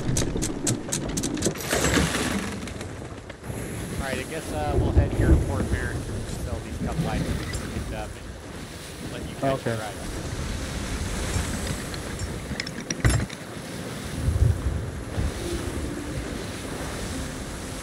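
Wind blows steadily over the open sea.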